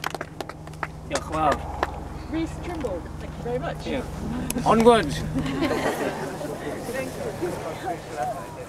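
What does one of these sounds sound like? A group of people talk and laugh nearby.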